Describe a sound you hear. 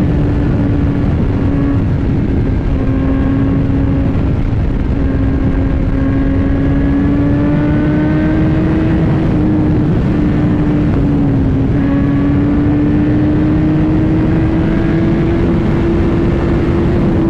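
A motorcycle engine hums steadily, its pitch slowly rising and falling with the throttle.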